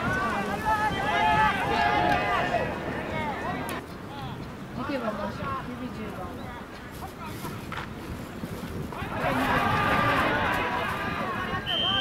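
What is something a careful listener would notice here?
Many young men shout and cheer loudly outdoors.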